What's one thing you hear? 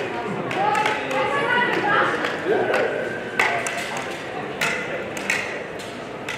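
Men and women chatter nearby in a large echoing hall.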